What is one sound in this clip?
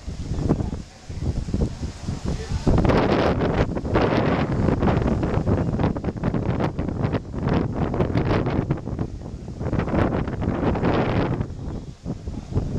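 Wind gusts outdoors, buffeting loudly and roughly against the microphone.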